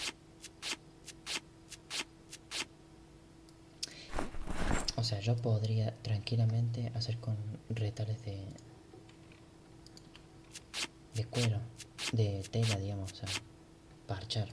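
Short interface clicks tick as menu items are chosen.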